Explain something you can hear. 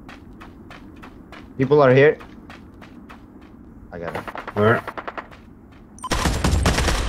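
Footsteps run quickly over ground in a steady rhythm.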